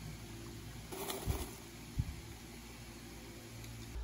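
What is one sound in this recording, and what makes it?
Wrappers rustle inside a glass jar as it is shaken.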